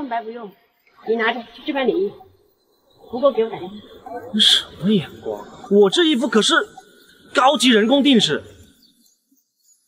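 A young man speaks with animation, close by.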